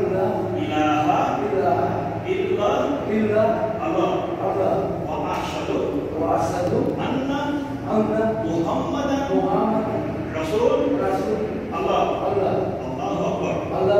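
Several men talk over one another with animation.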